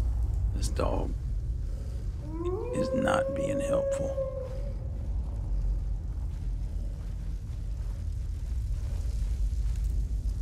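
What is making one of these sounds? Armoured footsteps thud on a stone floor.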